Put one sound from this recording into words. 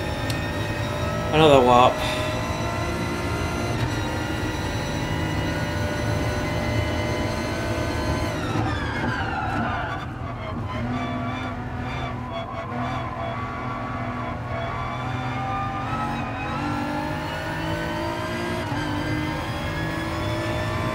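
A racing car engine roars steadily, rising and falling in pitch as the gears change.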